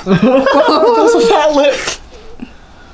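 Young men laugh close by.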